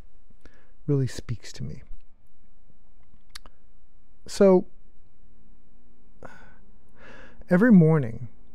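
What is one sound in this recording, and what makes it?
A middle-aged man speaks close to a microphone in short bursts, calmly and with animation.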